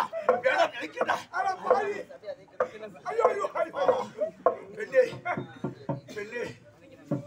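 A man speaks loudly and theatrically.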